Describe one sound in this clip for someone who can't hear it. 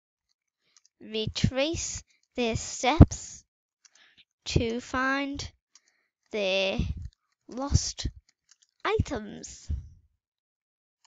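A young girl speaks slowly and clearly into a microphone, as if reading out.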